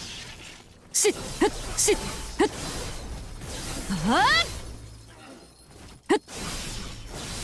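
Sword strikes clash and crack in quick bursts.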